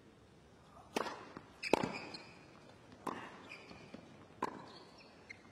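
A tennis ball bounces several times on a hard court.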